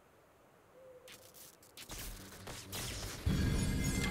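Electric lightning crackles sharply.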